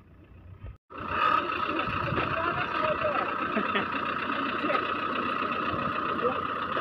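An off-road vehicle's engine idles close by.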